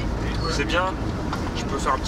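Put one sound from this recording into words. A vehicle engine hums low and steady.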